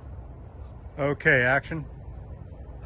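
A man shouts a short call to a dog.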